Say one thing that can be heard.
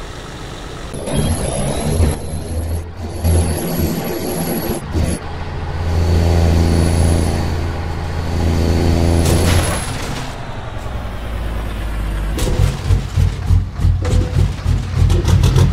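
A heavy truck engine rumbles and revs.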